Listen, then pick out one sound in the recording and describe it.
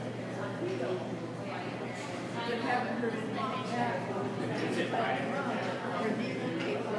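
A crowd of men and women chatters steadily in a busy room.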